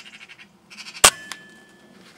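An air rifle fires once with a sharp crack.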